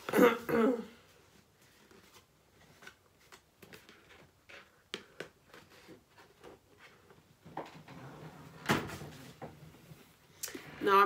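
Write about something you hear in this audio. A cardboard box rustles and taps in a woman's hands.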